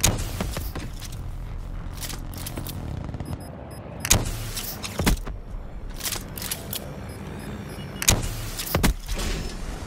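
A heavy rifle fires loud single shots.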